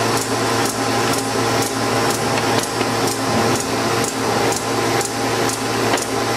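A paper machine hums and rattles steadily.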